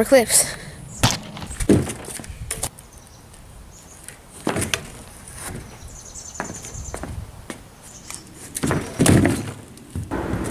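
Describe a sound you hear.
A scooter's wheels and deck clatter on a board.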